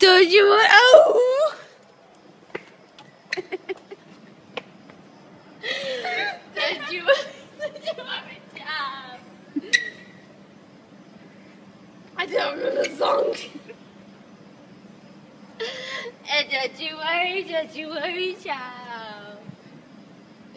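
A young woman talks and laughs close by with animation.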